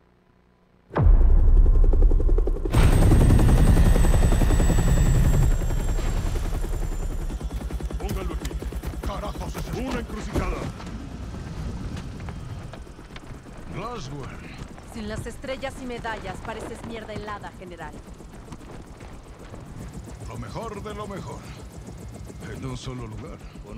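A helicopter's rotor thuds loudly and steadily nearby.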